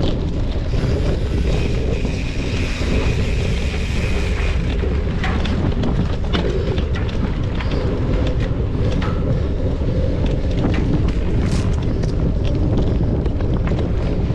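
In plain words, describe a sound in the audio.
Wind rumbles loudly over a microphone outdoors.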